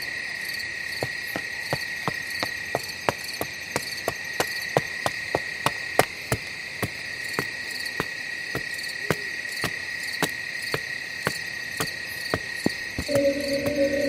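A small robot's metal feet tap quickly and evenly as it walks.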